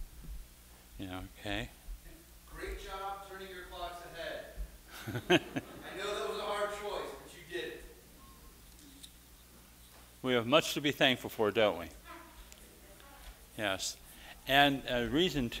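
An elderly man speaks calmly with pauses, in a large echoing room.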